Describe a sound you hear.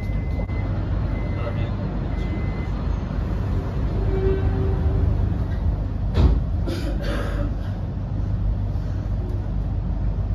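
A train engine hums low and steady from inside a carriage.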